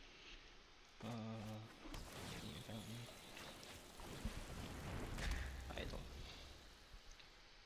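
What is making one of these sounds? A young man speaks casually into a close microphone.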